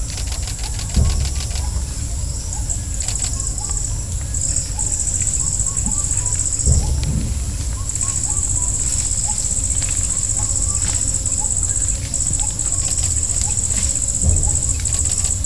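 Heavy elephant footsteps thud softly on dirt.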